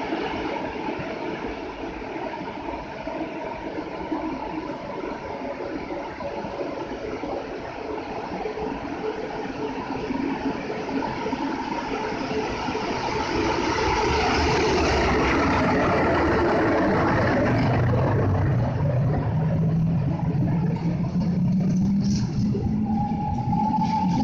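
An electric train approaches and rolls past close by, growing louder.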